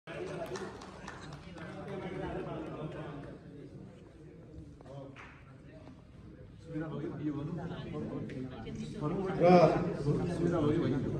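Several men and women talk at once in a room that echoes a little.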